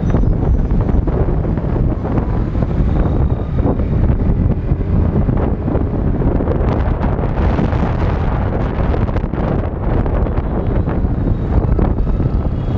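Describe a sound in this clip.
Motorbike engines hum and buzz all around in busy traffic.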